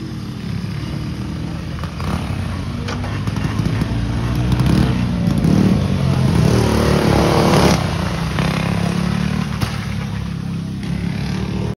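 A small kart engine buzzes loudly, growing louder as it passes close by and then fading.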